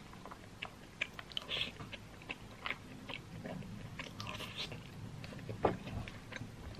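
A young woman chews food close by.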